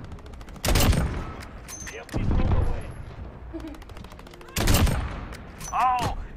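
A rifle fires loud, sharp shots.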